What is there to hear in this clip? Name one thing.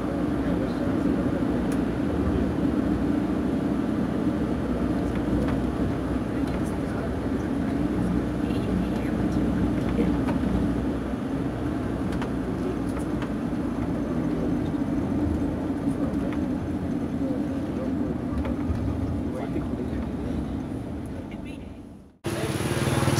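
A vehicle engine rumbles steadily while driving along a road.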